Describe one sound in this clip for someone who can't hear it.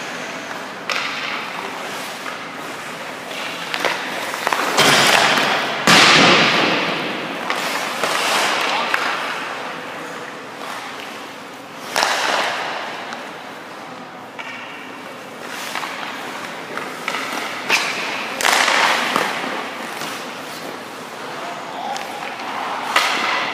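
Skates scrape and hiss on ice in a large echoing rink.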